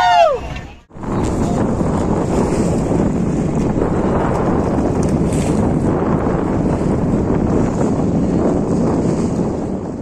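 Water rushes and splashes close by.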